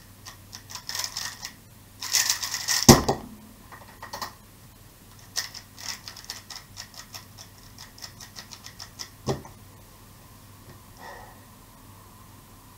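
A puzzle cube clicks and clacks rapidly as it is twisted.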